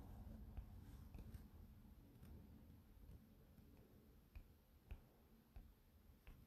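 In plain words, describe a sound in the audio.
Small footsteps tap softly on wooden boards.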